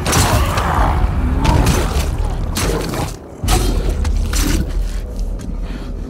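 A machete strikes flesh with heavy thuds.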